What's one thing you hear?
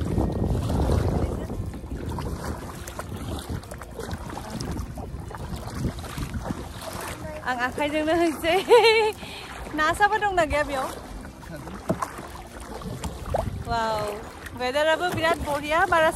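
A paddle splashes in the water.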